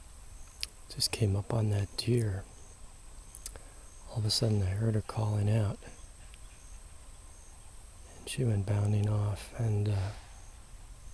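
A turkey gobbles several times.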